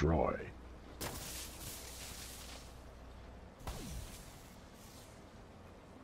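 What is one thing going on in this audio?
Glass cracks and shatters.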